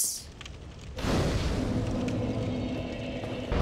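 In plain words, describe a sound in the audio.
A fire flares up with a whoosh.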